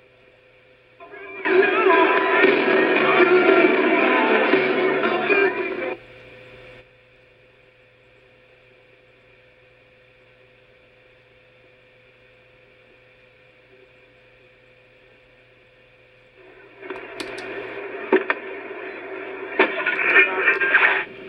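Music and sound effects from a game play through a small television's tinny speaker.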